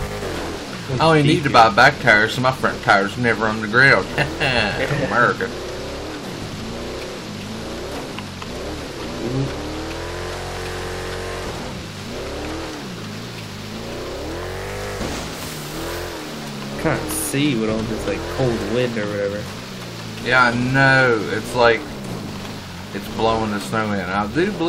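Water splashes and sprays against a moving truck.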